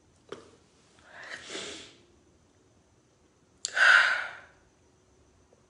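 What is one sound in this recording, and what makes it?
A young woman sniffles and sobs quietly.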